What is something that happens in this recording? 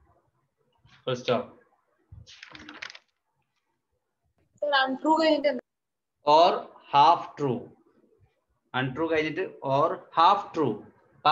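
A man speaks close by, explaining in a lecturing tone.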